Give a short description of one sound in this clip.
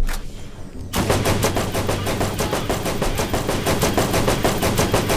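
A rapid-fire gun shoots in fast bursts.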